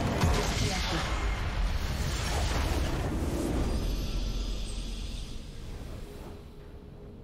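A huge explosion roars and rumbles, then slowly fades.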